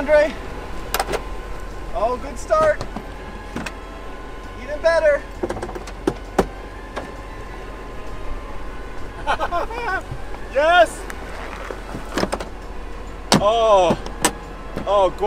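A convertible roof latch clunks.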